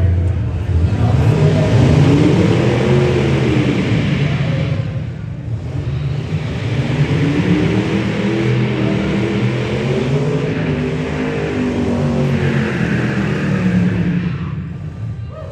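Tyres screech as a car spins on concrete.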